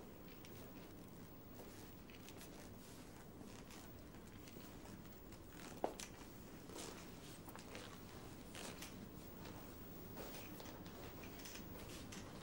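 Footsteps thud on wooden stairs and then on a floor.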